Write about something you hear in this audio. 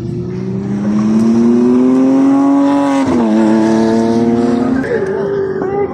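Engine revs rise and fall with gear changes as cars drive by.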